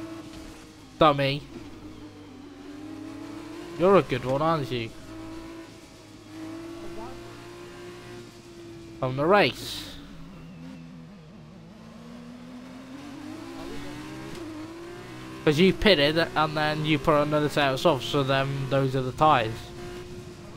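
A racing car engine revs sharply in short bursts.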